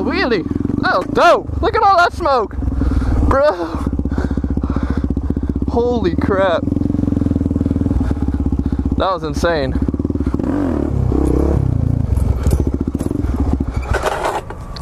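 A motorcycle engine idles and revs loudly up close.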